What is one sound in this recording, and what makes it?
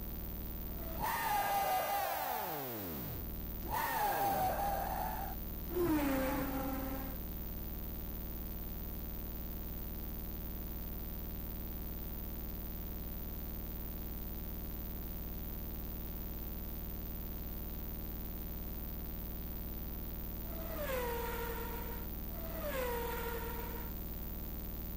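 Racing car engines whine loudly as cars zoom past.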